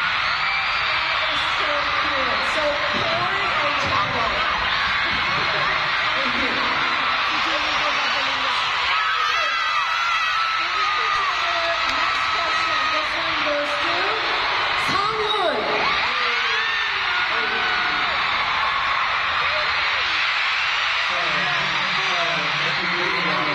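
A large crowd screams and cheers loudly throughout, in a big echoing hall.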